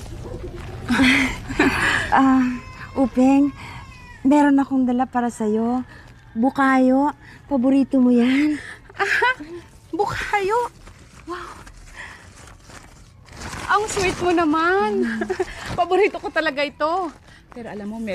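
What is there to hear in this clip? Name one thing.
An older woman speaks calmly up close.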